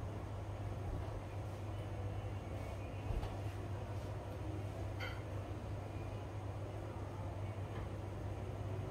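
An electric fan hums steadily nearby.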